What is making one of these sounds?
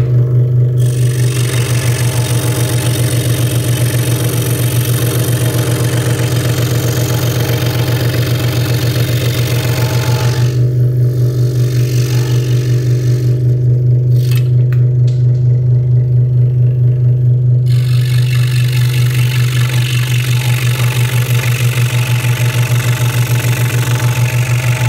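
A scroll saw hums and buzzes steadily.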